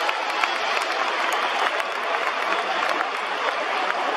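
Players clap their hands.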